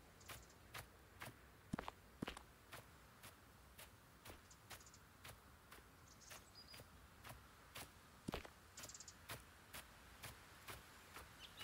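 Footsteps swish steadily through tall grass.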